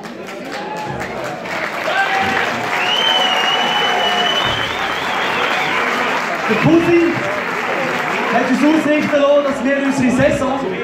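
A brass band with tubas plays loudly in a large echoing hall.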